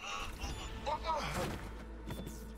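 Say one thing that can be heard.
A body thumps onto the floor.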